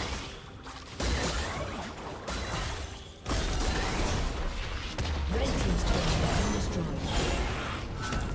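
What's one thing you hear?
Magical spell effects whoosh and crackle in quick bursts.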